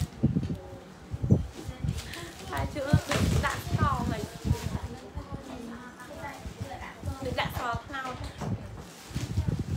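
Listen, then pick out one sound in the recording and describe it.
Clothes rustle as they are handled.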